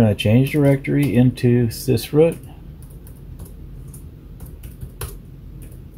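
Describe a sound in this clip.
Keys click on a keyboard.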